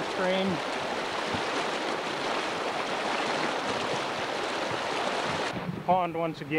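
A fast river rushes and churns loudly.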